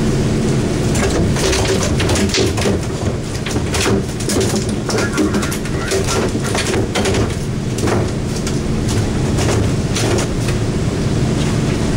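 A wooden pole knocks and scrapes against a boat's side.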